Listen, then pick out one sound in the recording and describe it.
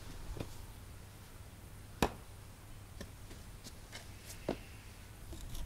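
A shovel scrapes and thuds into soil.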